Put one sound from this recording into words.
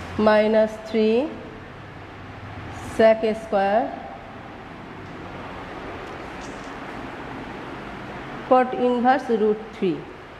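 A woman speaks calmly and clearly, pausing between phrases.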